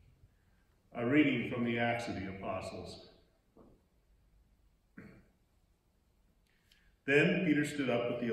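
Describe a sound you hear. A second man speaks calmly into a microphone.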